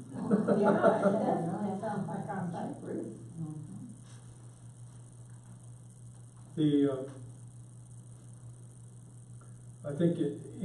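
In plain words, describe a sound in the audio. An elderly man reads aloud calmly, with pauses.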